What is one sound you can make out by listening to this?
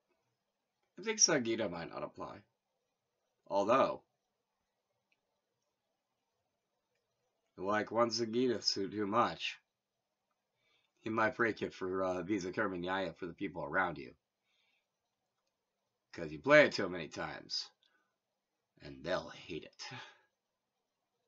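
A man talks calmly to the listener nearby, in short bursts with pauses.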